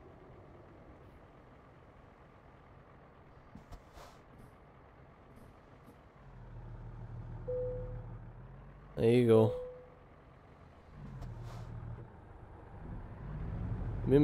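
A truck engine idles with a low rumble.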